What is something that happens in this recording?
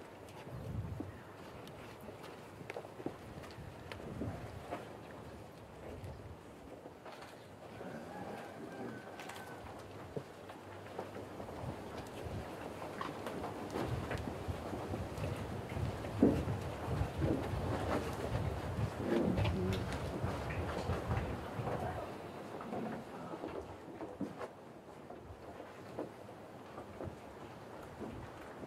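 A man speaks softly and warmly, close by.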